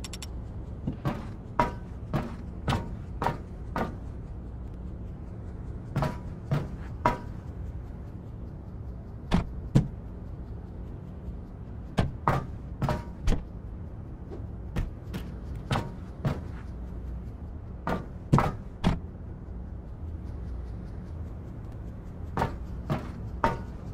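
Feet clank on metal ladder rungs in a steady climbing rhythm.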